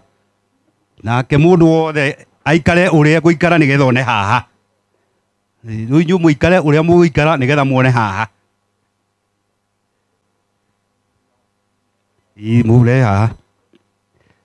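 A man speaks loudly into a microphone over a loudspeaker, outdoors.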